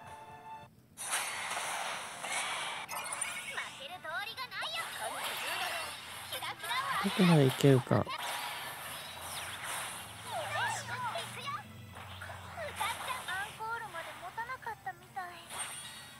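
Battle sound effects whoosh and crash.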